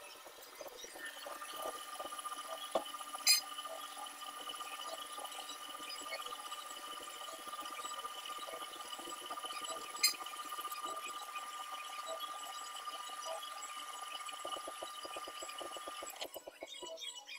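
A brake lathe hums and whines steadily as it turns a brake disc.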